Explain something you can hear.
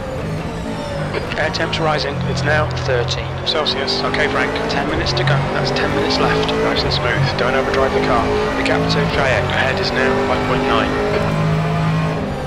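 Tyres squeal as a race car corners hard.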